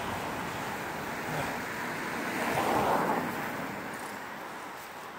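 A car drives past on a road, swelling and fading.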